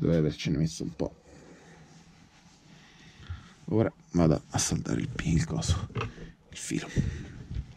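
Small parts click and tap against a circuit board.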